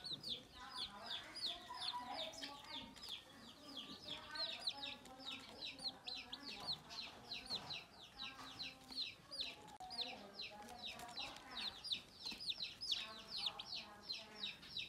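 Ducklings chirp in soft, lower trills.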